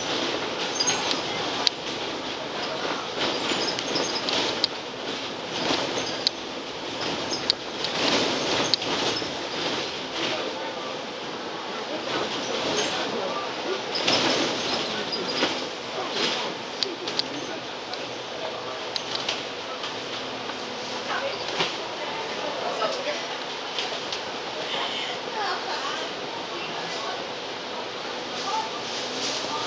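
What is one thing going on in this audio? The bus body rattles and creaks over bumps.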